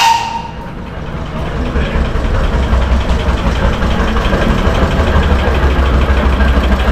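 A small steam engine rumbles closer along a street.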